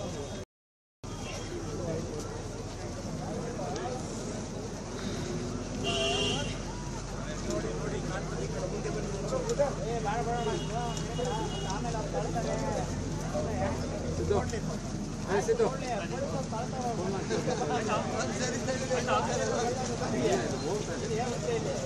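A crowd of men and women chatters and calls out outdoors.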